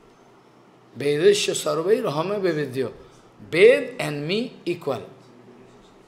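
An elderly man speaks calmly and expressively into a microphone.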